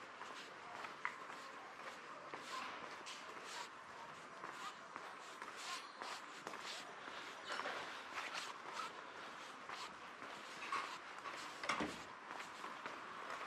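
Footsteps tap steadily on cobblestones outdoors.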